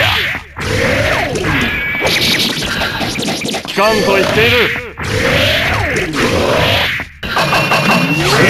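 Sword slashes and sharp hit effects from a fighting game crash again and again.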